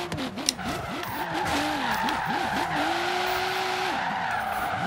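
Tyres screech on asphalt as the car slides through a curve.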